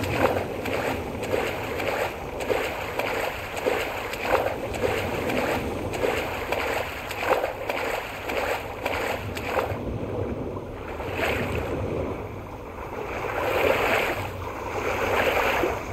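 Water splashes with quick swimming strokes.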